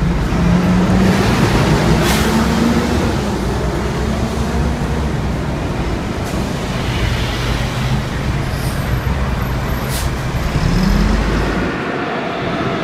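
Traffic hums along a busy street.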